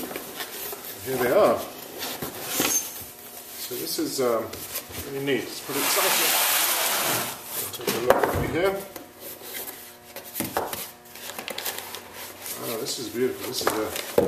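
Cardboard boxes scrape and thump as they are handled.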